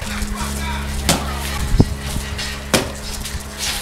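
Feet thud on hard ground.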